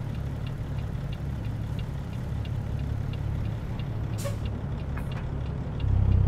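A diesel semi-truck's Caterpillar C15 engine rumbles at low revs.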